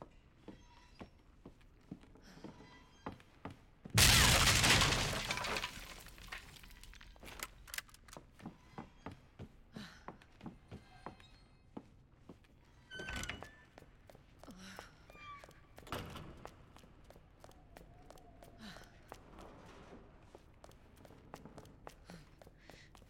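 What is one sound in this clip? Footsteps tap steadily on a wooden floor.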